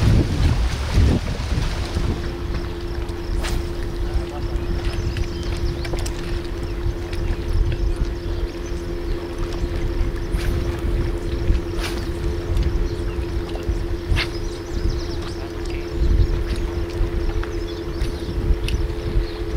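Wind blows outdoors, rumbling across the microphone.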